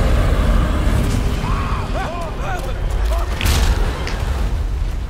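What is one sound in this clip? A huge creature roars deeply.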